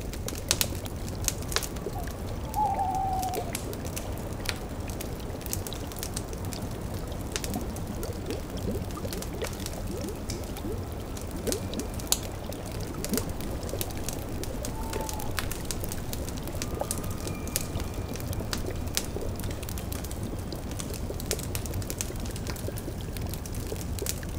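A fire crackles and pops steadily.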